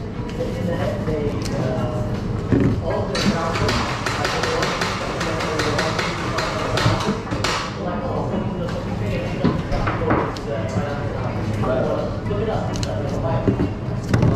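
A plastic bottle is set down with a knock on a hard counter.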